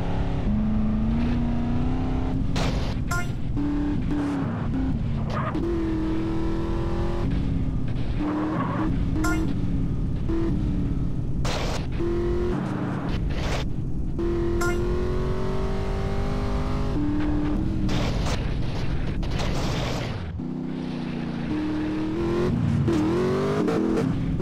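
A car engine revs hard, climbing and dropping in pitch through gear changes.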